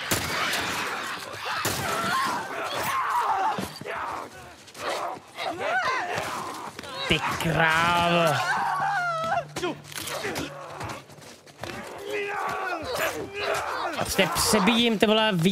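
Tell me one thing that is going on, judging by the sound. Blows and thuds land in a scuffle.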